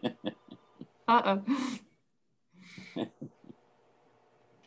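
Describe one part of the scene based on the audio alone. A young woman laughs softly over an online call.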